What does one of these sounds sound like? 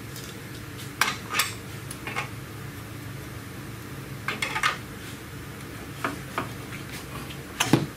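A ratchet wrench clicks as a bolt is turned.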